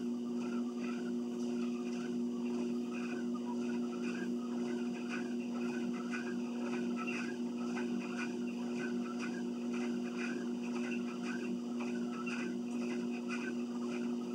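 A treadmill motor hums.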